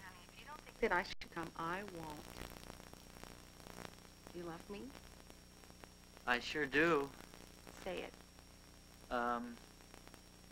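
A young woman speaks on a telephone.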